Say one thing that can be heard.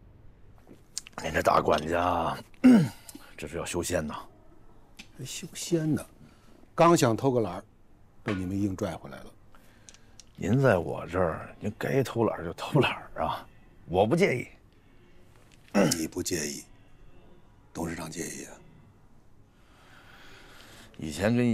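A middle-aged man speaks calmly and warmly nearby.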